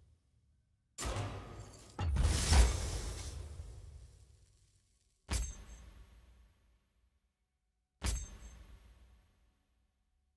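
A game chimes with a swelling fanfare as a reward pops up.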